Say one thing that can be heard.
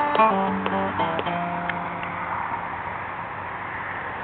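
An acoustic guitar is plucked up close, its notes ringing out and fading.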